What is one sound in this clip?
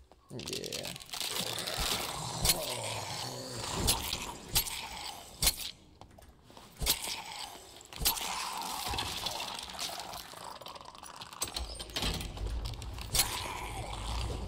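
Footsteps thud on a stone floor.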